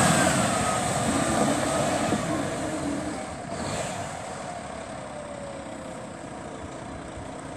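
A truck engine rumbles nearby and slowly fades.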